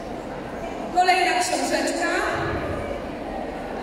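A woman speaks into a microphone over loudspeakers in a large echoing hall.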